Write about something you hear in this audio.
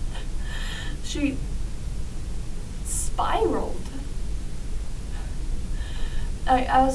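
A young woman speaks in a tearful, shaky voice close by.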